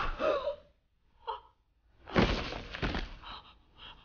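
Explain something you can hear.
A young woman gasps in shock.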